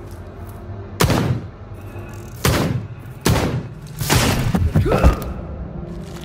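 A gun fires loud single shots.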